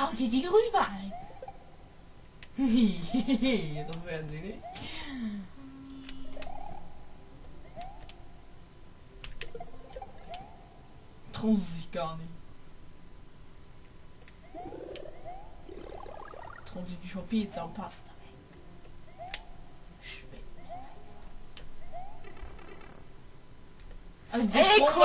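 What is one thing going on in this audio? Cheerful retro video game music plays steadily.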